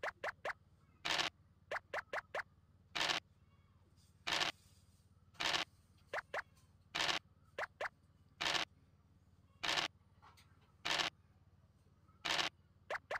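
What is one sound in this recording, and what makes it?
Dice rattle as they roll, again and again.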